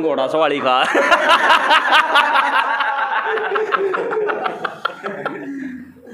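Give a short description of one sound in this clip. A group of young men laugh and cheer nearby.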